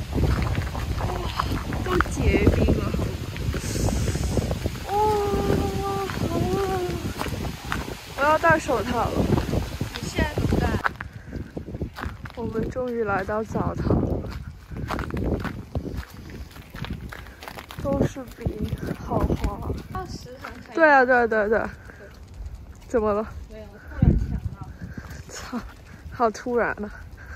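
Footsteps crunch on icy snow.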